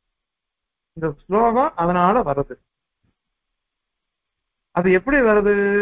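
An elderly man chants in a sing-song voice through a microphone.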